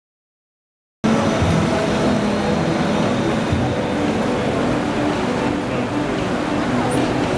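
Fast water rushes and churns loudly.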